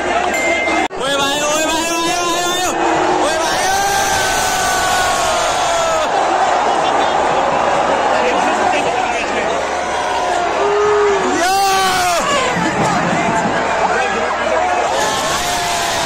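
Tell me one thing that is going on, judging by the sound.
Fans nearby cheer and shout excitedly.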